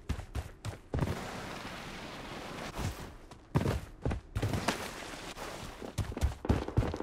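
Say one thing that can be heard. Water splashes around wading feet.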